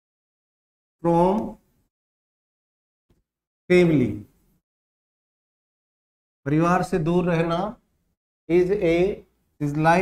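A man speaks in short bursts close to a microphone, like a teacher explaining.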